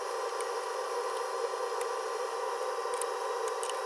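A screwdriver taps and scrapes against metal parts.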